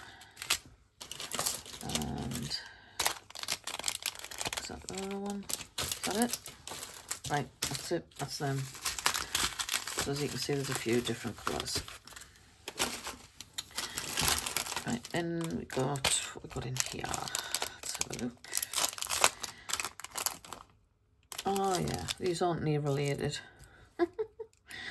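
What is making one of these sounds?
Plastic bags crinkle and rustle between fingers.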